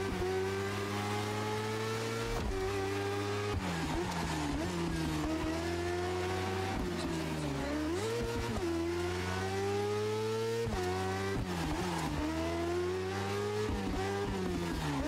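A motorcycle engine revs high and drops through gear shifts as it races.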